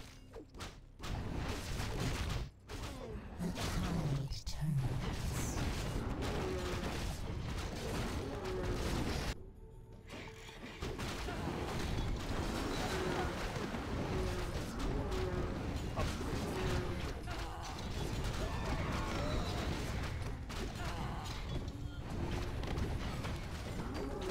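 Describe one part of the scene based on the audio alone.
Weapons clash and clang in a busy battle.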